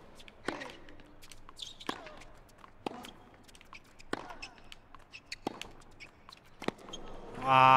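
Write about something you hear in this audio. A tennis ball is struck back and forth with sharp pops of rackets.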